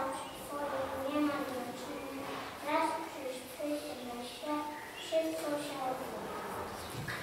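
Young children sing together in a large echoing hall.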